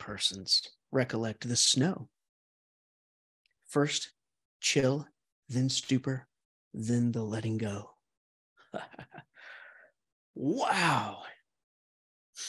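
A middle-aged man reads out calmly and slowly, close to a microphone.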